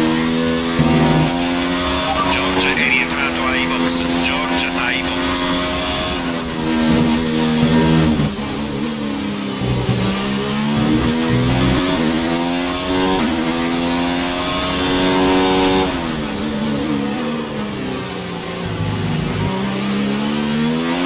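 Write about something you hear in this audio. A racing car engine screams at high revs, rising and dropping as the gears shift.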